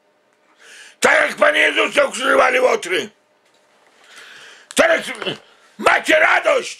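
A middle-aged man speaks close to the microphone, with feeling, in short bursts.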